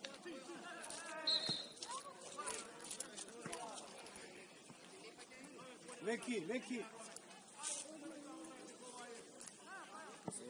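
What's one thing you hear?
Young players shout to one another across an open field.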